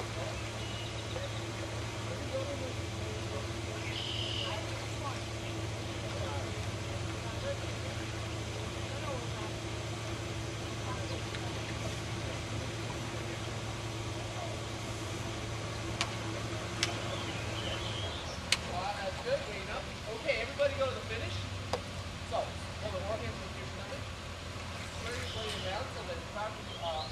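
Young people talk and call out nearby outdoors.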